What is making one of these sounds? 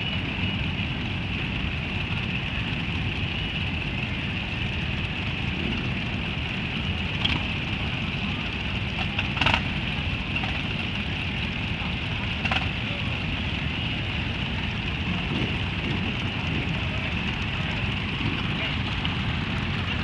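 Many motorcycle engines idle and rumble steadily nearby, outdoors.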